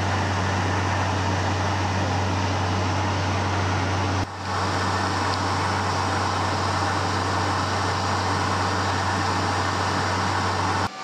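Aircraft engines drone steadily and loudly.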